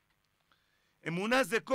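A man speaks loudly and animatedly into a microphone.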